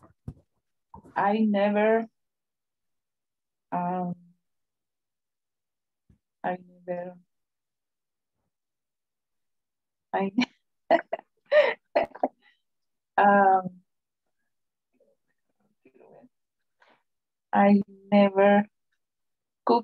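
A woman speaks in short, halting phrases over an online call.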